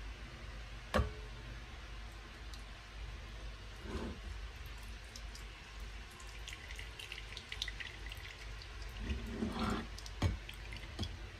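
A plastic strainer knocks lightly against a glass bowl.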